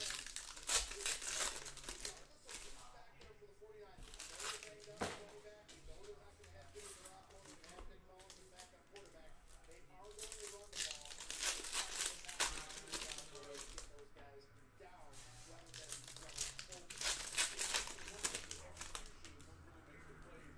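Foil card packs crinkle and tear open close by.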